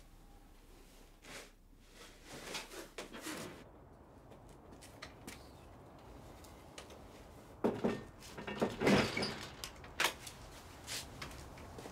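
A door knob rattles as a hand pushes at a wooden door.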